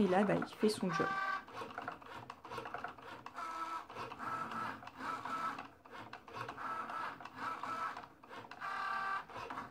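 A small cutting machine's motor whirs in short, repeated bursts.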